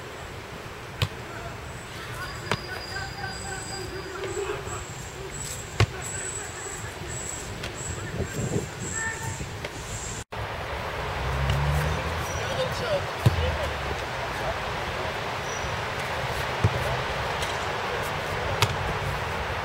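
A football thuds hard off a goalkeeper's hands.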